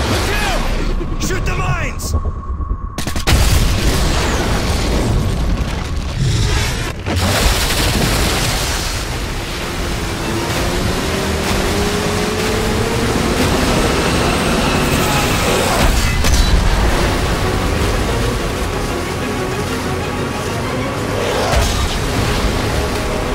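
Explosions boom loudly nearby.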